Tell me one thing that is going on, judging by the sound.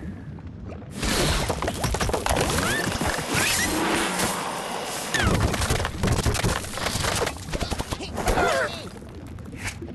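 Game sound effects whoosh and crash as blocks topple.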